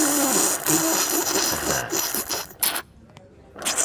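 A woman slurps a drink loudly through a straw.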